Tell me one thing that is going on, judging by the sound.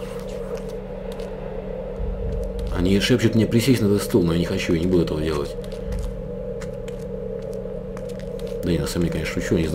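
Footsteps crunch slowly on a gritty floor.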